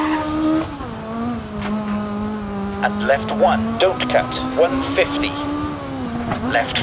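A rally car engine drones at high revs, dropping in pitch as the gear shifts up.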